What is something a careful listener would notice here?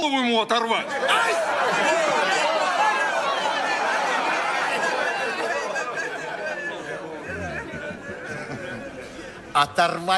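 A large audience laughs and cheers.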